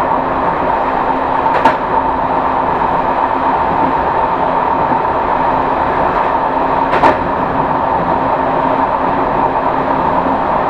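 A train rumbles steadily along the rails, heard from inside the cab.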